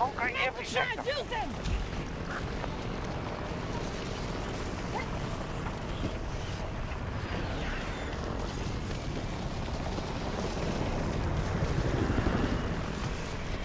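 Footsteps thud over grass and rock.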